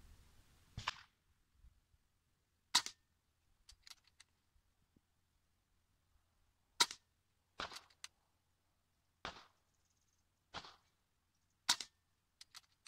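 A rifle fires loud, sharp shots outdoors, each followed by a short echo.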